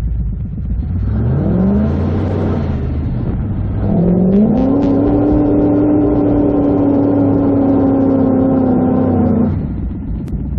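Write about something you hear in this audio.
An off-road vehicle's engine revs hard, rising in pitch and then holding a high roar.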